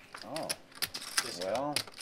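Poker chips click and clatter as they are stacked.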